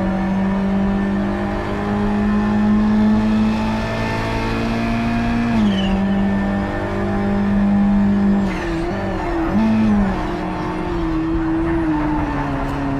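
A car engine roars steadily at high revs, its pitch shifting as gears change.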